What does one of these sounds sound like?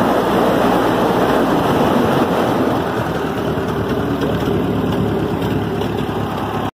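Wind blusters against the microphone outdoors.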